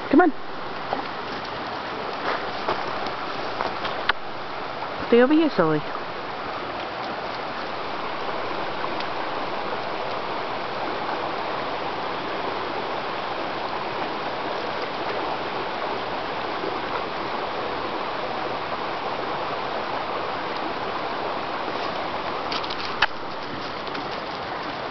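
A shallow stream babbles steadily nearby.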